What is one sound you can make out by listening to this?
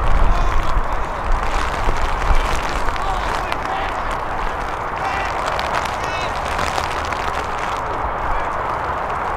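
Young men shout to one another across a field.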